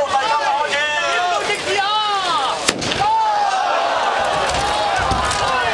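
Fireworks bang and crackle.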